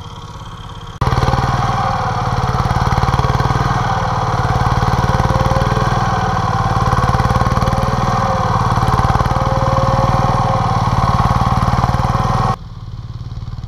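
A tractor engine chugs loudly and steadily nearby.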